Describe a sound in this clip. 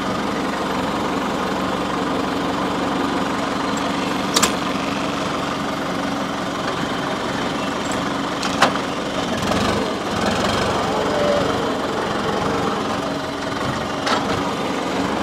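A harrow scrapes and rattles through loose soil.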